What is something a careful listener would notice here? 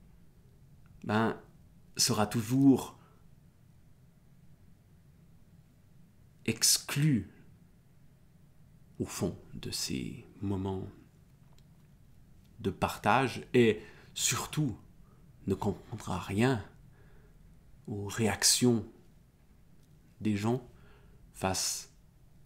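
A middle-aged man talks calmly and expressively close to a microphone, with pauses between phrases.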